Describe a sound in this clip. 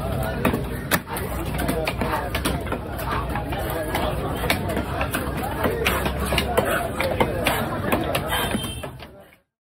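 A heavy knife chops into a large fish on a wooden block with sharp knocks.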